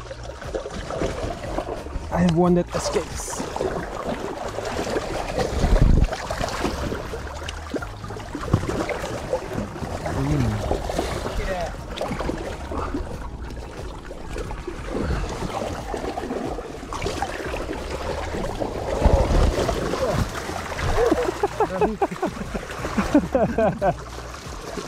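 Water splashes and sloshes as hands stir it close by.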